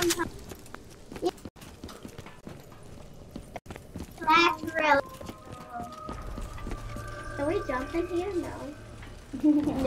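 A boy talks excitedly close to a microphone.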